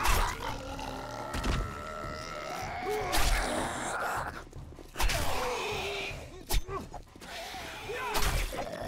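Zombies groan and snarl close by.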